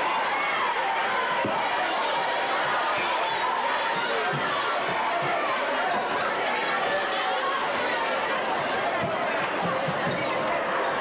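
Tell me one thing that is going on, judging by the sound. Basketball sneakers squeak on a wooden court.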